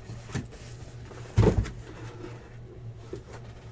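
A cardboard box rustles and scrapes as it is handled.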